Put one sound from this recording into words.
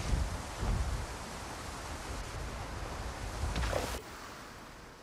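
Water splashes and rushes around a moving boat.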